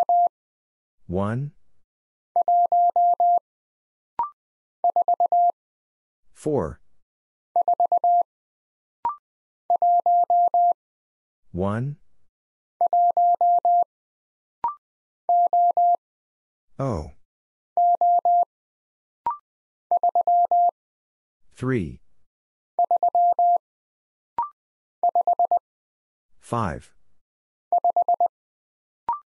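A Morse code key taps out a rapid series of high beeps.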